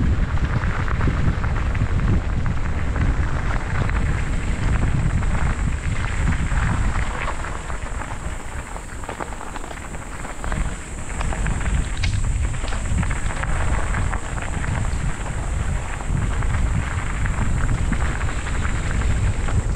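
Wind buffets and rumbles loudly outdoors.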